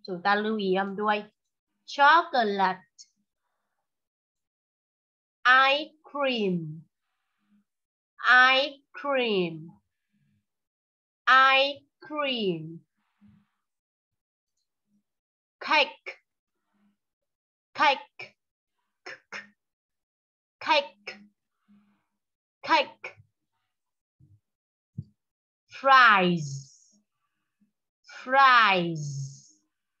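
A young boy talks close to a phone microphone in short bursts, with pauses in between.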